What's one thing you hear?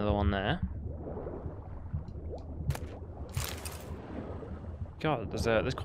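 Water churns and swirls in a low, muffled underwater rumble.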